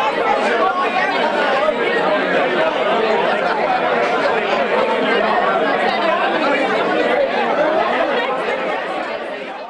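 A crowd of men and women chatters loudly nearby.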